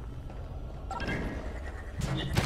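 A heavy block thuds down onto a button.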